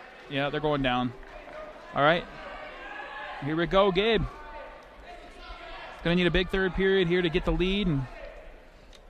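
Men in a crowd shout loudly in an echoing hall.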